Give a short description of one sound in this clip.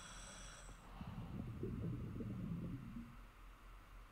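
Bubbles gurgle as a scuba diver breathes out underwater.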